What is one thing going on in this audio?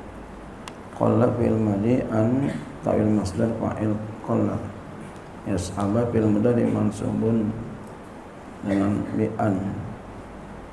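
A middle-aged man speaks slowly into a microphone, in a calm recitation with pauses.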